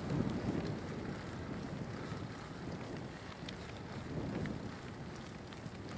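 A man speaks close by, slightly out of breath.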